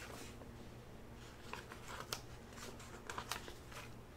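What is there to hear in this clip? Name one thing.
A paper sheet rustles softly.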